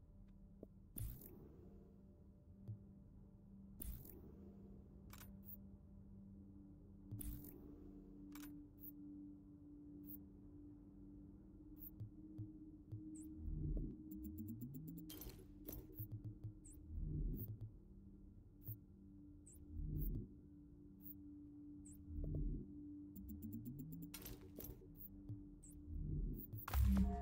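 Soft electronic clicks and whooshes sound as menu items are selected.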